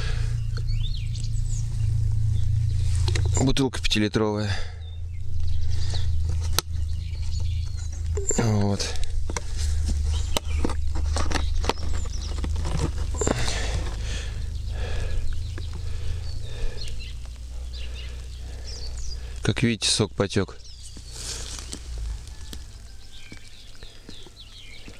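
A man speaks calmly into a close microphone.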